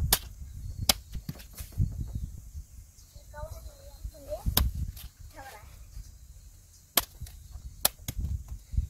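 A machete chops sharply through a banana flower.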